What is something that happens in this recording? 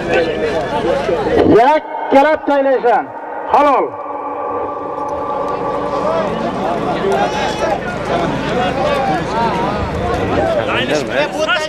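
A man shouts with excitement nearby.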